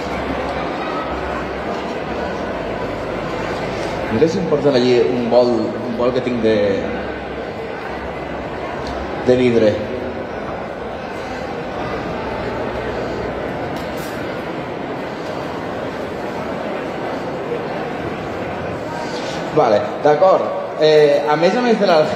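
A crowd murmurs steadily in a large hall.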